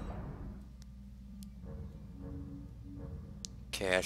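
A game menu clicks as a choice is changed.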